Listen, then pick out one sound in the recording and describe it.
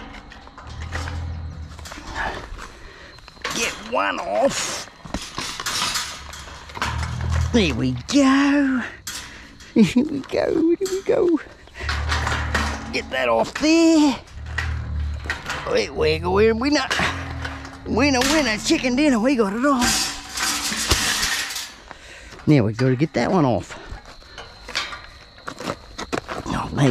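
A metal wire cart rattles and clanks as it is climbed and shaken.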